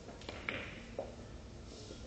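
Billiard balls knock against each other with a clack.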